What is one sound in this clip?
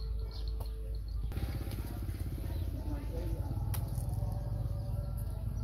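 Hooves shuffle and thud on dry dirt.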